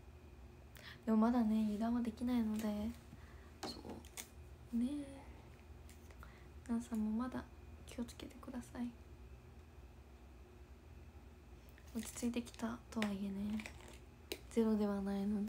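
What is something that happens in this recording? A young woman speaks calmly and softly, close to a microphone, with pauses.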